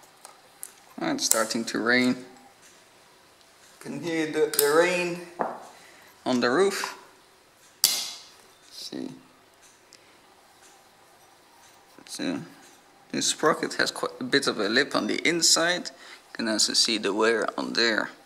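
Metal parts clink and click as they are handled.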